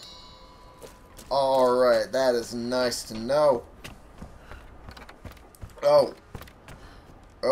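Footsteps thud on wooden boards and dirt.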